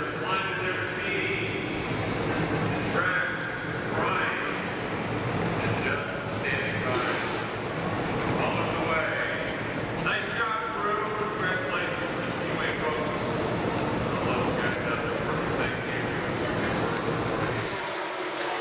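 A crowd of spectators chatters nearby, outdoors.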